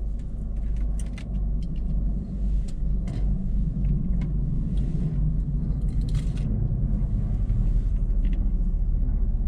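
A paper wrapper rustles and crinkles.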